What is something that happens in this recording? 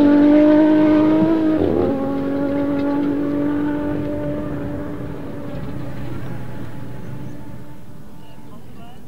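A rally car engine drones loudly and fades as the car drives away.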